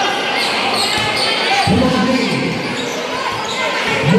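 A basketball bounces on the hard floor.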